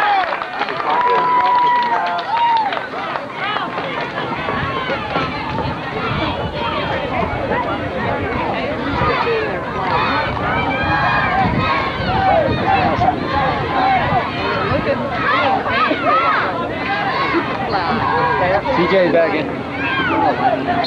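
A crowd of spectators chatters and cheers outdoors.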